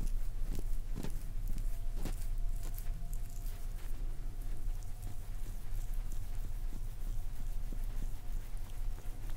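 Oily hands rub and squeeze a bare foot with soft, close, slippery sounds.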